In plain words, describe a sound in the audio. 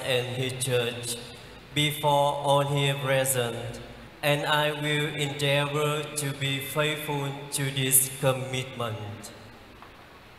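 A young man chants through a microphone, his voice echoing in a large hall.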